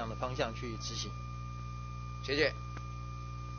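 An elderly man speaks into a microphone in a calm voice.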